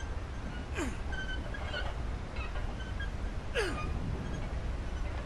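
A handcar rumbles steadily along metal rails.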